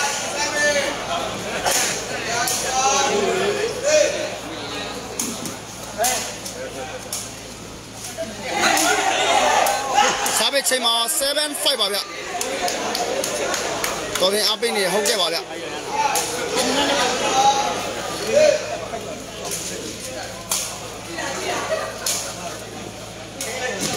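A sepak takraw ball is kicked with sharp smacks.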